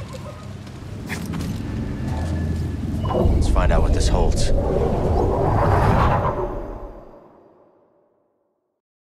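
A magical energy hum swells into a loud rumbling roar, then fades to silence.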